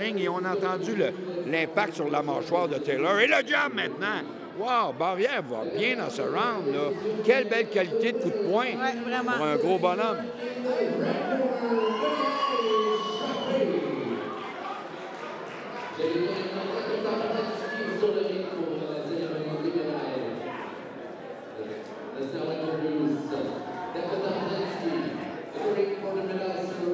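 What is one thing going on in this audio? Spectators shout and cheer excitedly in a large echoing hall.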